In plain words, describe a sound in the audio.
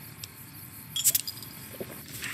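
An electronic device gives a burst of crackling static as it switches off.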